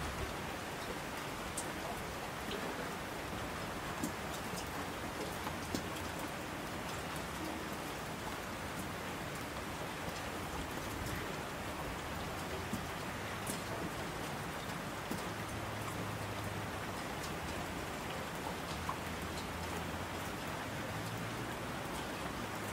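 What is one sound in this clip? A mountain stream rushes loudly.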